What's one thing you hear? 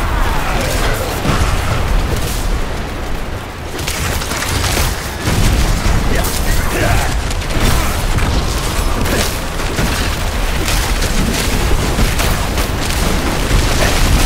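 Icy magic blasts crackle and whoosh in quick bursts.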